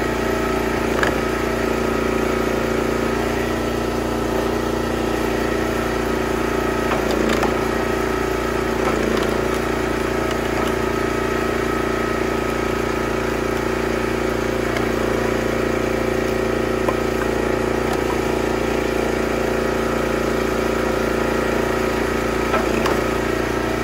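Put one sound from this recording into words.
Split firewood knocks and clatters as it falls onto a pile.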